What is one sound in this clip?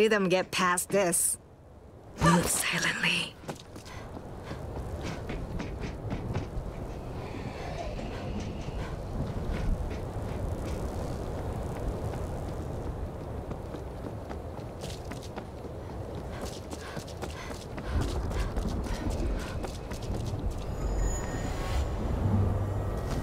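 Footsteps thud steadily on hard ground and metal stairs.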